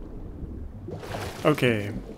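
Water splashes loudly as something plunges in.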